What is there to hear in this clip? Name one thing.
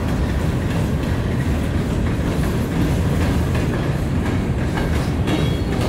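Covered hopper cars roll by with rattling and clanking.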